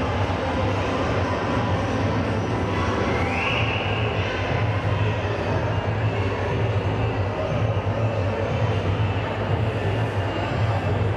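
Children chatter in a large echoing hall.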